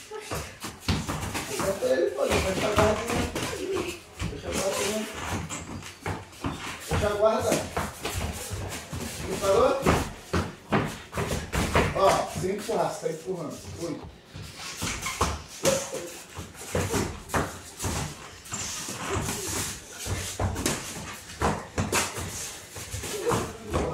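Boxing gloves thump against each other in quick bursts.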